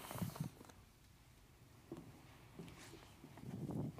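Footsteps cross a wooden floor.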